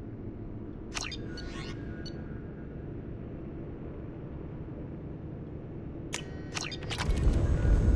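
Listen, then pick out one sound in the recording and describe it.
Electronic menu chimes beep and swish.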